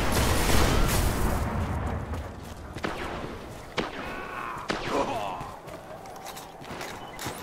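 A rifle fires sharp shots in short bursts.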